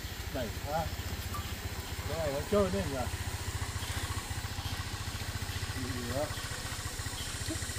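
A motorbike engine idles with a steady low putter.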